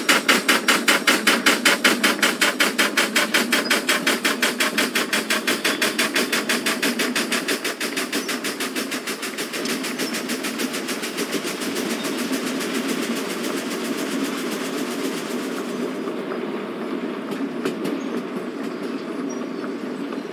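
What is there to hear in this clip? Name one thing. A steam locomotive chuffs rapidly, the puffs slowly blending into a steady roar.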